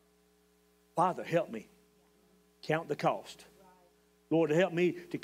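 A middle-aged man speaks slowly and earnestly into a microphone, with pauses.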